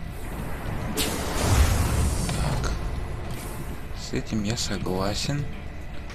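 Gunfire and explosions rumble from a battle.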